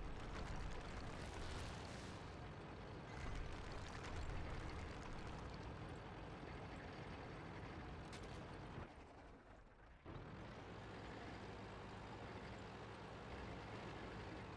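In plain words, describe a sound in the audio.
A heavy tank's engine rumbles as it drives.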